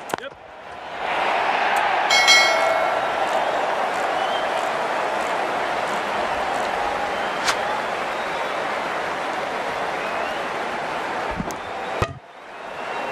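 A large stadium crowd roars and cheers loudly.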